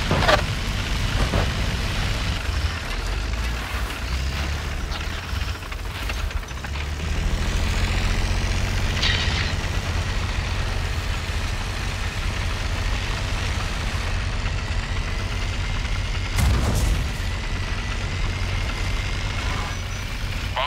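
Tank tracks clatter and grind over the road.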